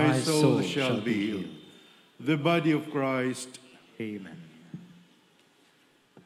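A man speaks calmly through a microphone in a large echoing space.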